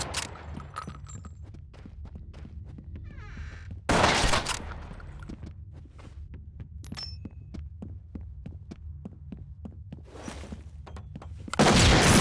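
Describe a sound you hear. Footsteps tread steadily across a hard floor indoors.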